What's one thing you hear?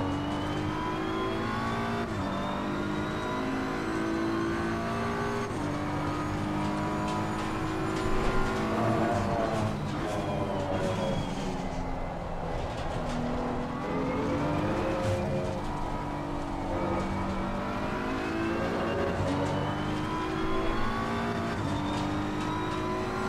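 A racing car engine roars at high revs, rising through the gears and dropping as it slows for corners.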